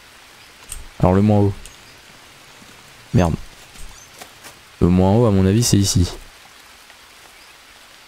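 Leaves rustle as someone pushes through dense foliage.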